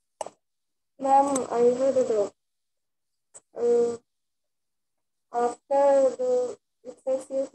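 A young girl speaks in short phrases through an online call.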